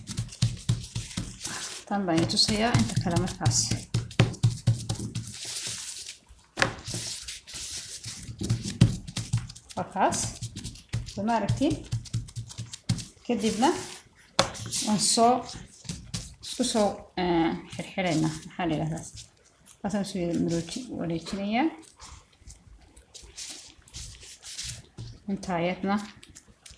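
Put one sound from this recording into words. Hands pat and press soft dough on a wooden board.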